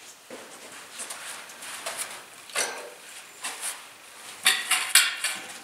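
A metal pole clanks and rattles as it is handled.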